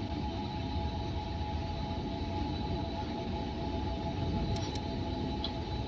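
Soft clicks sound.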